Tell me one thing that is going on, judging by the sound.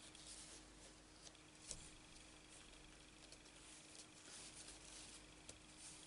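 Paper rustles softly as fingers press it down.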